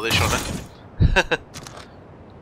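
A metal crate lid clanks open.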